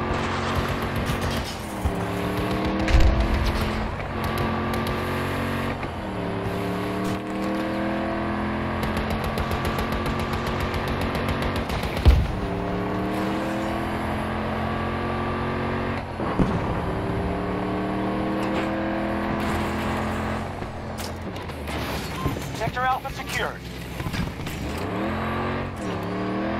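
A wheeled armored vehicle's engine revs up again and again as it shifts through its gears.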